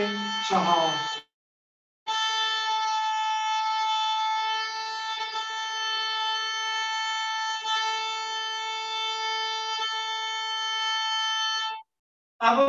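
A violin plays a long, steady held note, close by.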